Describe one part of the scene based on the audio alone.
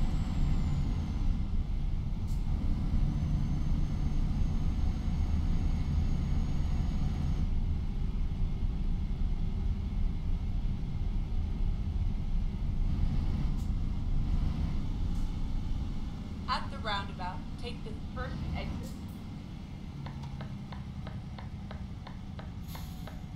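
A truck engine rumbles steadily, easing off toward the end.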